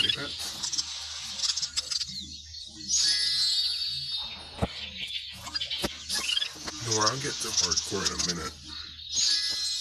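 A cartoon egg cracks open with a bright jingle.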